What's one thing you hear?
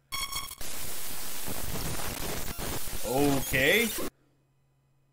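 Loud static hisses and crackles, then cuts off abruptly.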